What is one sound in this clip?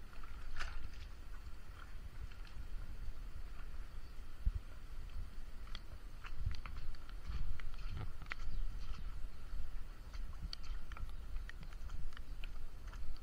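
Rain patters lightly on wet ground nearby.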